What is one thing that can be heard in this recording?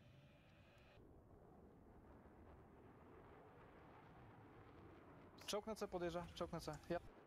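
A jet fighter's engines roar with afterburner on takeoff.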